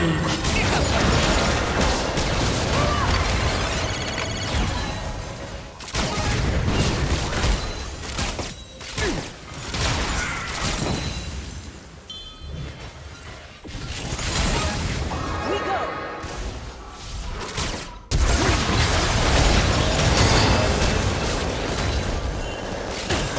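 Magic spells explode and crackle in a fast game battle.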